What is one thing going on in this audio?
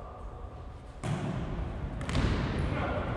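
A ball thuds as it is kicked, echoing through a large hall.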